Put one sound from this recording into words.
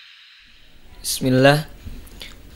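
A young man speaks calmly into a close microphone.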